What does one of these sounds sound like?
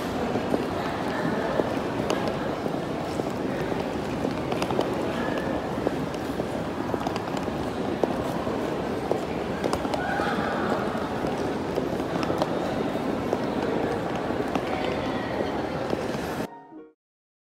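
Suitcase wheels roll and rattle over a tiled floor.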